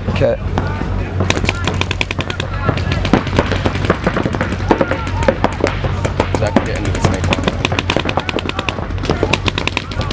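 A paintball gun fires rapid bursts of pops close by.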